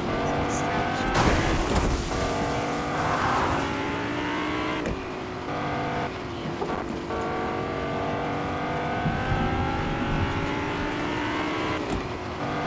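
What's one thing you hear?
A car engine hums steadily, rising and falling in pitch as the car speeds along.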